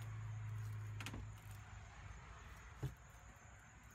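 A wooden hatch knocks and thuds as it is pushed open.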